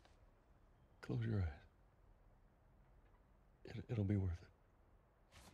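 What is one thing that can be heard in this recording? A man speaks softly and calmly up close.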